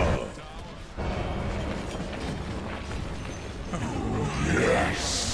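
Game battle effects clash, whoosh and crackle.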